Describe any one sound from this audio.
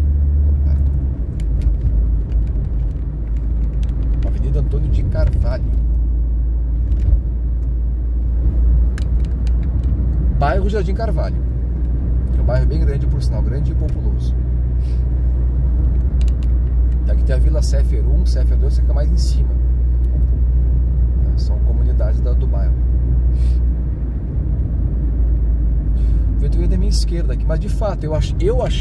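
A car engine hums steadily with road noise from the tyres.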